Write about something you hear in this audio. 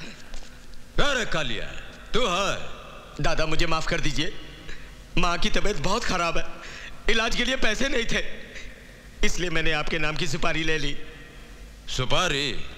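A young man pleads tearfully, close by.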